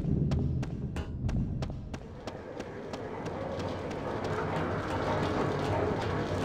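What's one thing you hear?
Footsteps run quickly and steadily across a hard floor.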